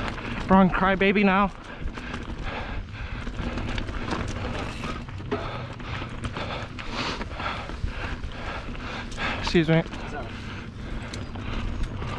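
A bicycle rattles over bumps in the trail.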